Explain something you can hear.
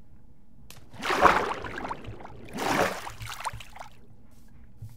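Water splashes loudly as someone swims.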